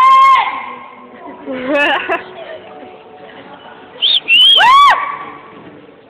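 A woman sings through loudspeakers in a large echoing hall.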